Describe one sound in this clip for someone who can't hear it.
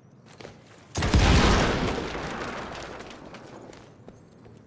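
Flames burst with a loud whoosh and crackle, then die down.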